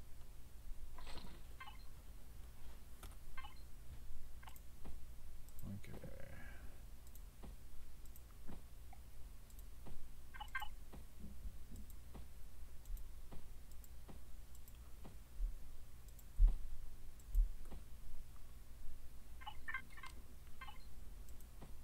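Soft game menu clicks and beeps sound now and then.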